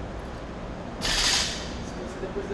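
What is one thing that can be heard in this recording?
A loaded barbell drops and crashes onto the floor.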